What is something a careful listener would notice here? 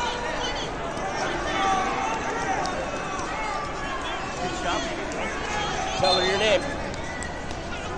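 A large crowd chatters and calls out in a big echoing hall.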